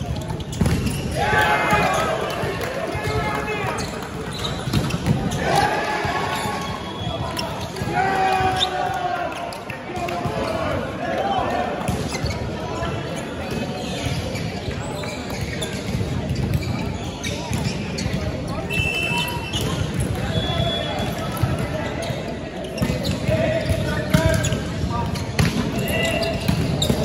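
Men call out to each other across a large echoing hall.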